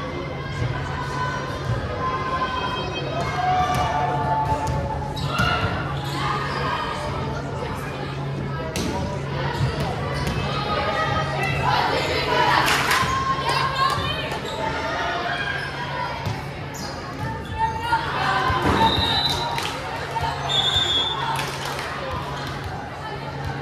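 Young girls chatter and call out together in a large echoing gym.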